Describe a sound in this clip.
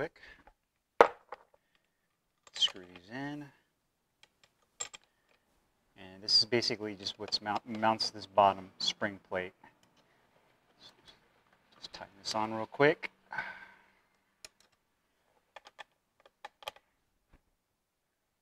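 A metal pole clicks and clanks into a plastic base.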